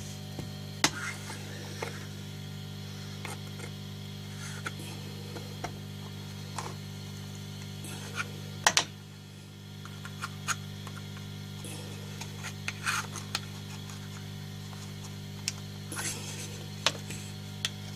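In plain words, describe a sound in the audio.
A screwdriver scrapes and clicks against a metal casing.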